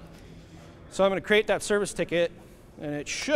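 A man speaks loudly and clearly in a large room.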